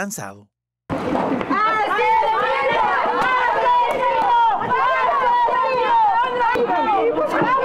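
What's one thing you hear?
A crowd of men and women shout and chant loudly, close by.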